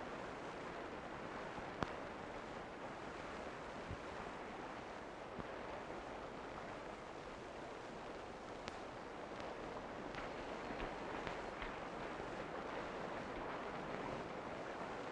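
Horses' hooves thud on rough ground.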